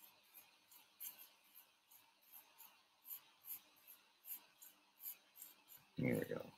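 Soft footsteps tap steadily on grass.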